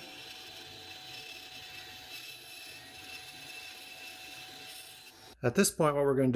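A band saw hums steadily as it cuts through wood.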